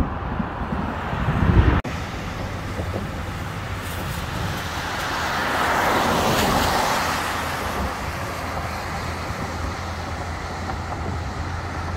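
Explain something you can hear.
Wind rumbles against a moving car.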